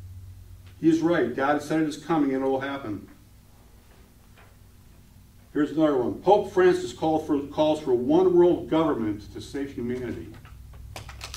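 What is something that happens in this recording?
A middle-aged man speaks calmly into a microphone in a hall with some echo.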